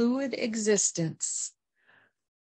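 An older woman speaks with animation close by.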